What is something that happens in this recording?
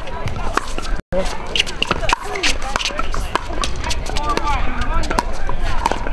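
Paddles smack a plastic ball back and forth in quick volleys.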